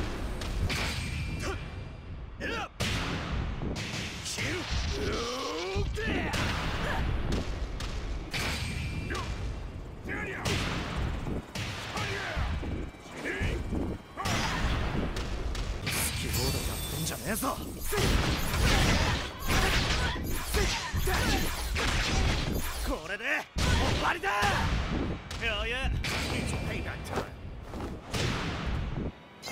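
Punches and kicks land with heavy thuds and crackling bursts.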